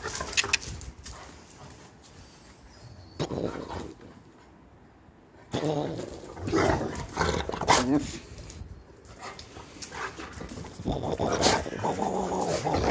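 A dog's paws patter and scrape on paving stones.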